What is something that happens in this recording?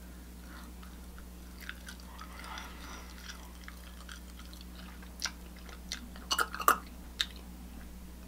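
A woman chews food close to a microphone with soft, wet sounds.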